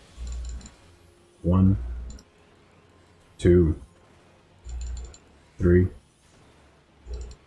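A magic spell hums and crackles.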